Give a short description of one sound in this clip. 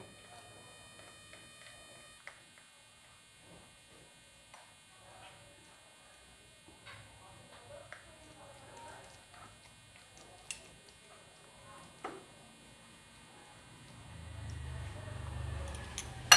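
A spoon scrapes and clinks against a ceramic bowl while stirring.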